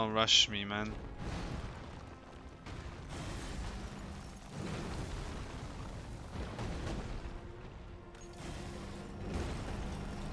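A sword swings and clashes in combat.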